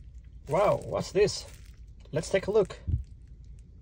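Plastic wrap crinkles in a hand.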